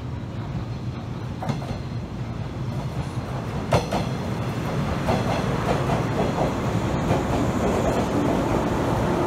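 An electric train rumbles into the station and rolls past close by.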